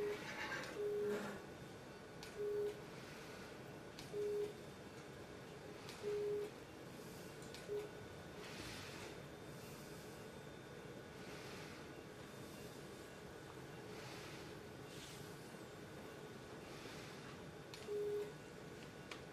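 A surgical sealing device beeps in short, steady tones now and then.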